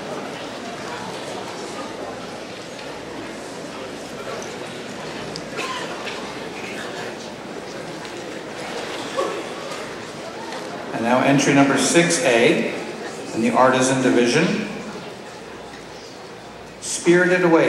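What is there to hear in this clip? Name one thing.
A man speaks theatrically through loudspeakers in a large hall.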